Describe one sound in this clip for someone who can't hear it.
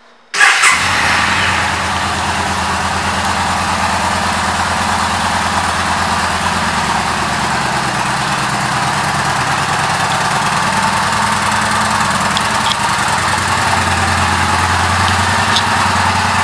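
A motorcycle engine idles with a deep, steady rumble.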